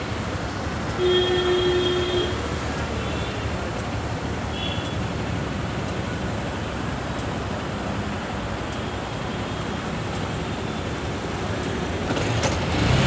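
A motorcycle engine idles steadily close by.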